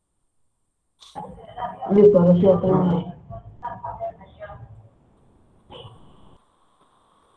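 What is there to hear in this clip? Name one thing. A boy speaks briefly over an online call.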